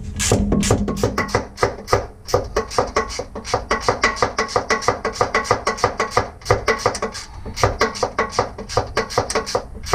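A ratchet wrench clicks quickly and steadily.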